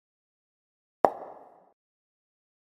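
A young woman makes a sharp popping sound with her lips close by.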